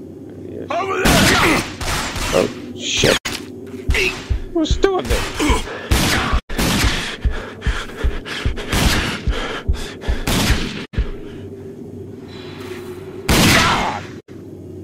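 Pistol shots ring out in quick succession.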